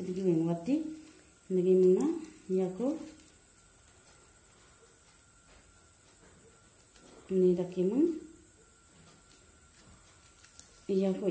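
Plastic strips rustle and rub softly as they are woven.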